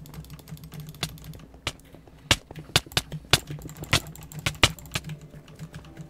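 Game sword hits land with sharp thwacks in quick succession.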